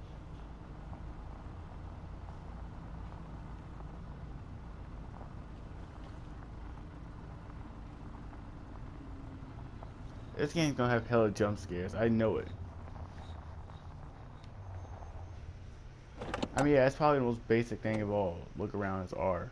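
A car engine hums steadily at low speed.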